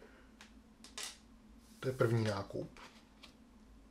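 A small plastic game piece taps down on a table.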